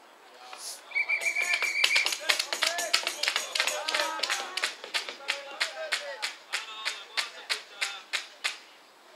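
Hands clap in a quick, steady rhythm.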